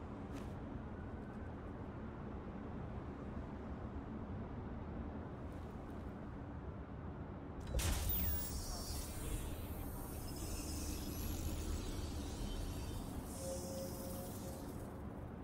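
Footsteps crunch on dry leaves and concrete.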